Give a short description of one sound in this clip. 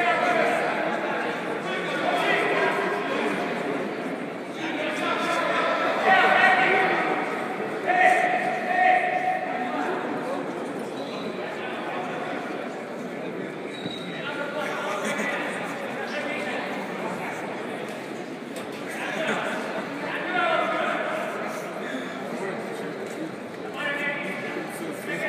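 People talk in a crowd, heard in a large echoing hall.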